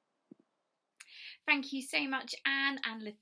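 A middle-aged woman speaks with animation, close to a microphone.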